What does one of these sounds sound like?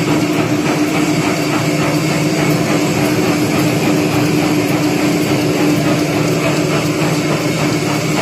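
A machine's rollers turn with a steady hum and rapid clatter.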